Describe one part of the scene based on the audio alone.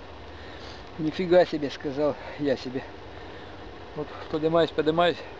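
A middle-aged man speaks close by, in a low, calm voice.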